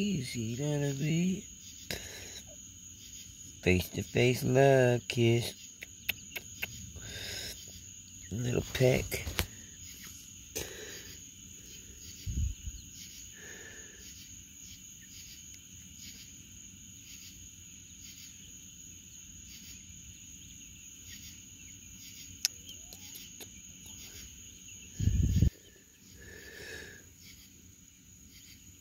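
Chickens cluck softly.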